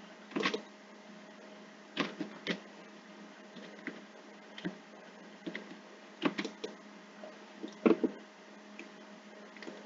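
Cardboard boxes thump as they are dropped and stacked.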